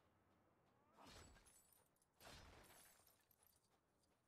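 A video game explosion bursts loudly as objects break apart.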